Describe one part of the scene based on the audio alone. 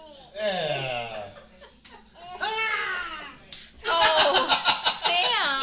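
A toddler squeals and babbles excitedly up close.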